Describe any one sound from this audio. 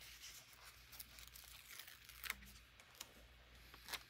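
Paper rustles as a sticker is peeled from a sheet.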